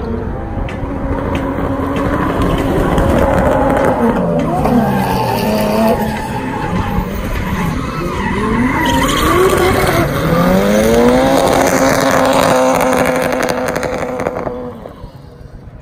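Tyres squeal on the track.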